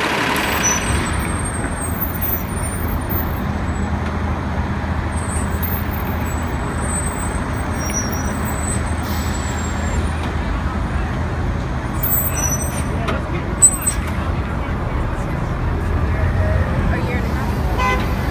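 A bus engine rumbles low and idles close by.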